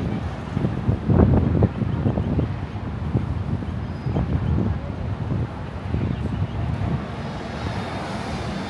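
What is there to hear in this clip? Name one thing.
Traffic rumbles along a city road.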